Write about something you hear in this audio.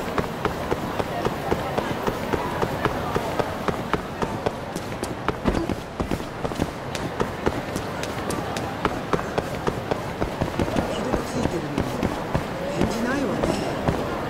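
Quick running footsteps slap on pavement.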